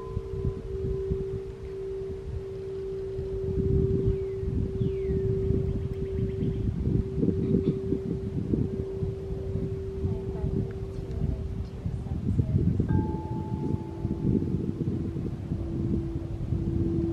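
Wind blows outdoors, rustling leaves in the trees.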